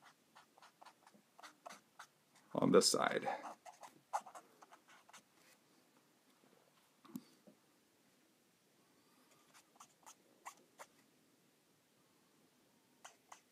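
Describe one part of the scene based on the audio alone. A marker tip scratches and taps softly on paper.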